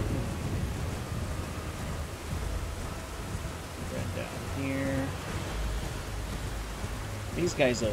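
A horse gallops, its hooves thudding steadily on a dirt path.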